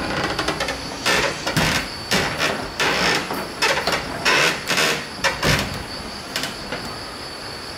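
Wooden doors knock and thud as they close.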